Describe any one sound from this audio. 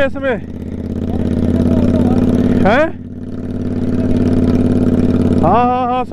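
A motorcycle engine drones steadily close by.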